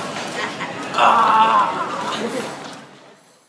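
A boy laughs loudly and excitedly close by.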